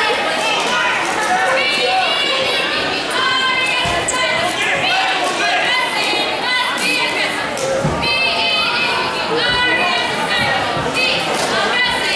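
A crowd of spectators shouts and cheers loudly in a large echoing gym.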